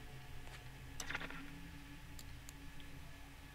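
A game menu opens with soft clicks.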